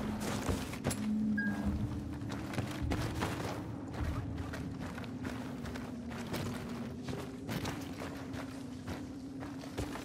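Footsteps crunch slowly over rough ground.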